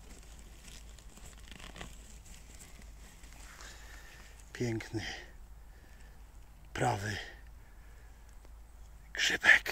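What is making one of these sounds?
Dry leaves rustle and crackle as a hand digs through them.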